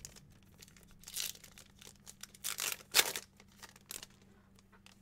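A foil pack crinkles and tears open.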